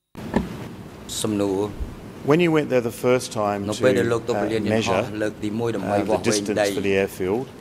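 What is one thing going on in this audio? An older man speaks steadily into a microphone.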